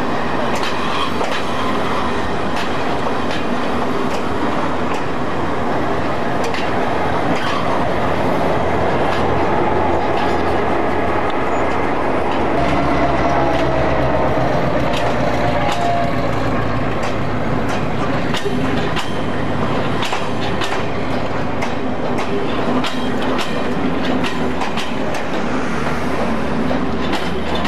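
A diesel locomotive rumbles and throbs as it passes close by.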